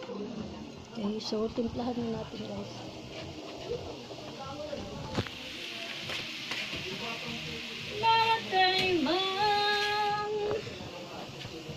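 Noodles and vegetables sizzle softly in a hot wok.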